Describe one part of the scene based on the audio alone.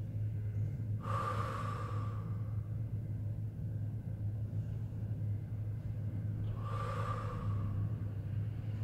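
A woman breathes out hard.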